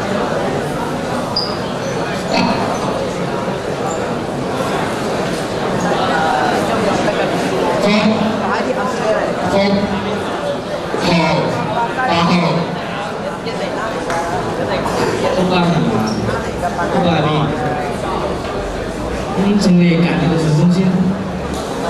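A young man speaks into a microphone over loudspeakers in a large hall.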